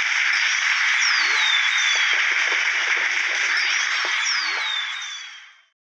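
Fireworks whistle upward and crackle.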